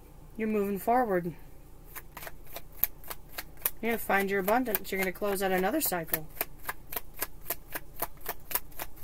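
Playing cards flick and snap as they are shuffled.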